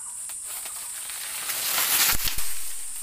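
A banana plant topples over with a rustling crash of leaves.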